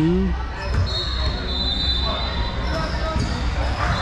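Players' shoes squeak on the court.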